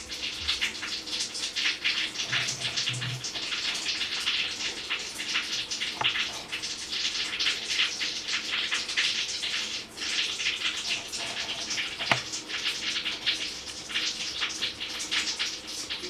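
Newborn kittens squeak and mew in high, rapid chirps close by.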